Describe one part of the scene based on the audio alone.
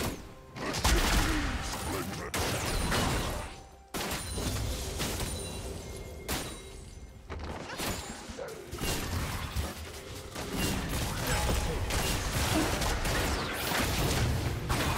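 Game spell effects crackle and clash in a fast fight.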